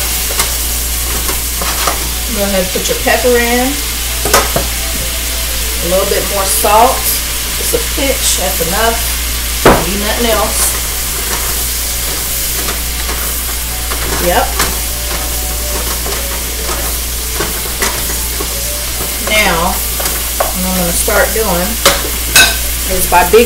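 A spatula scrapes and clatters against a wok.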